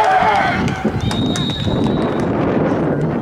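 A referee's whistle blows briefly.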